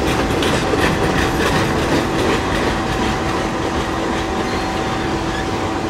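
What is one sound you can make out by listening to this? A freight train rumbles past close by, its wheels clacking on the rails.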